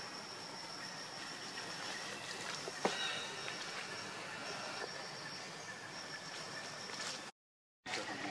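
Leaves rustle as monkeys walk through undergrowth.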